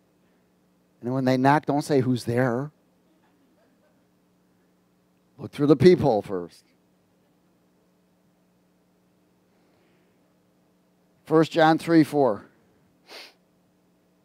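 A middle-aged man speaks with animation through a headset microphone, pausing between phrases.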